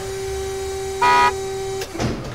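An electronic button beeps loudly.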